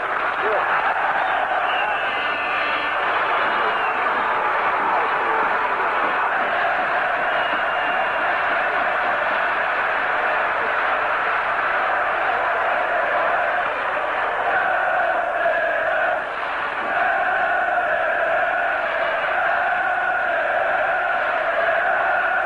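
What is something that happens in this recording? A large stadium crowd roars and cheers outdoors.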